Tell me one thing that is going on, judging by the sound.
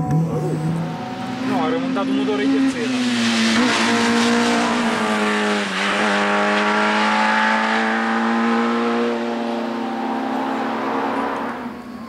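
A second rally car engine screams as it approaches and races away up the hill.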